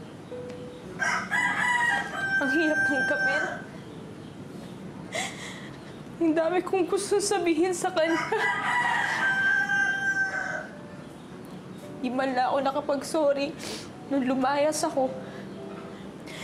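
A young woman speaks nearby, upset and close to tears.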